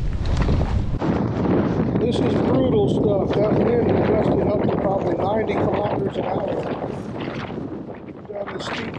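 A man talks close to the microphone.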